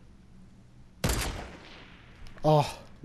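A bolt-action sniper rifle fires a single shot with a rolling echo.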